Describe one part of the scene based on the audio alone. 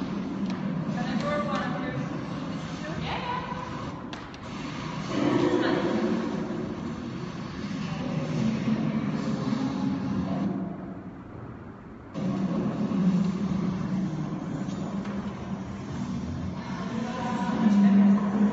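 A woman speaks calmly in an echoing hall.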